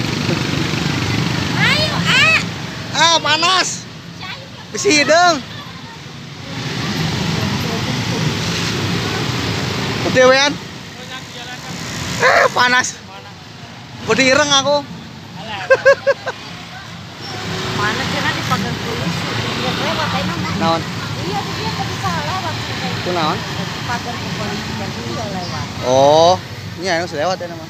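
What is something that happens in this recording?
Motorcycle engines rumble and idle nearby outdoors.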